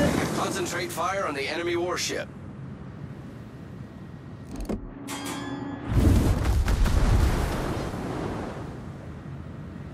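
Shells splash into the water around a battleship.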